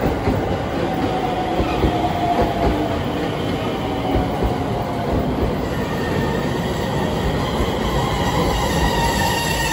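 A train rumbles past slowly, its wheels clattering on the rails.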